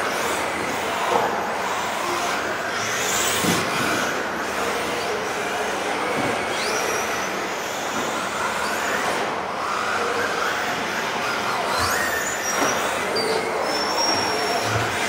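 Small electric motors whine as toy cars race around a large echoing hall.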